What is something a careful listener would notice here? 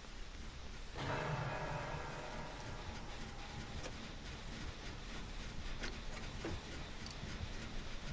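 A generator clanks and rattles as it is repaired.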